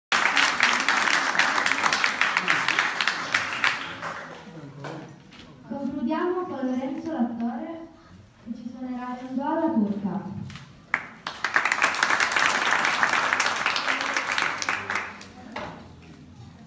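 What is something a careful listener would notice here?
An audience claps loudly in an echoing hall.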